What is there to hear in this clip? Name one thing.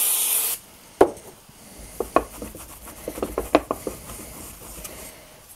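A thin metal sheet clatters and scrapes as it is picked up.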